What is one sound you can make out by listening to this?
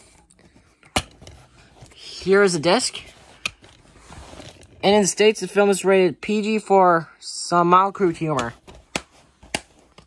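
A plastic disc case snaps and clicks.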